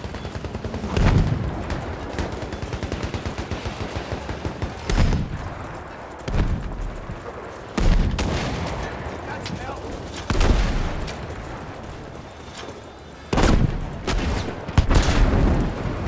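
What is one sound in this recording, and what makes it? Explosions boom heavily nearby, again and again.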